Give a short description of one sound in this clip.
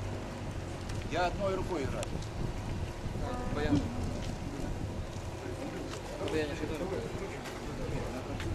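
An elderly man talks with animation close by.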